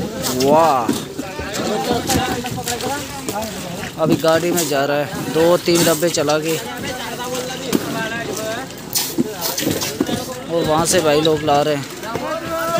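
Several men talk loudly nearby outdoors.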